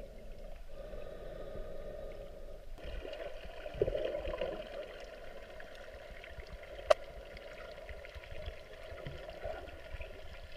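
Muffled water swirls and crackles, heard from underwater.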